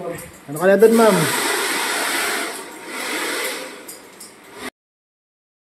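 A hair dryer blows with a steady rush of air.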